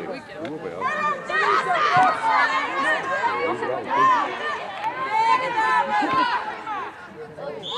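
Young women shout loudly across an open field outdoors.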